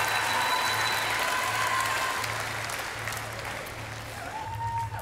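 A large crowd cheers and claps loudly.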